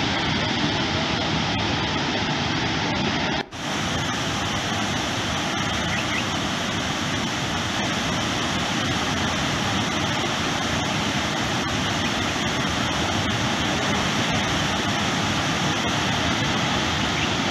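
Water roars as it pours through open dam gates.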